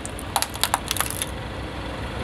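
Plastic toys crack and crunch under a car tyre.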